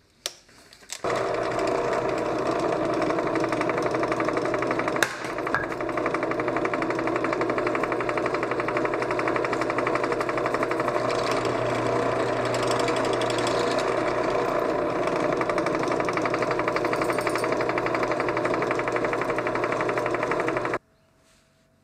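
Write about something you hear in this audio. A drill press motor whirs steadily while drilling into metal.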